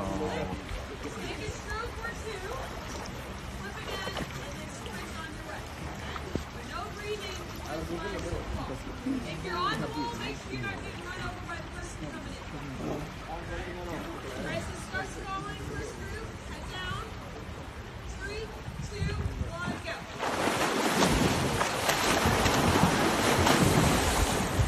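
Swimmers splash through water.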